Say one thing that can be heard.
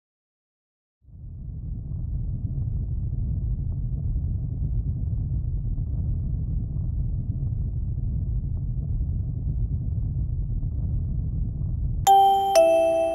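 A spacecraft engine rumbles low and steady.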